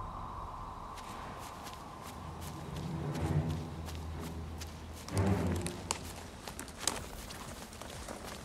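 Footsteps tread softly over a forest floor.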